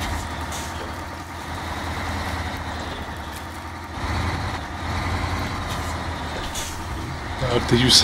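Tyres squelch through thick mud.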